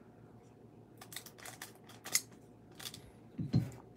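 Scissors snip through a foil card wrapper.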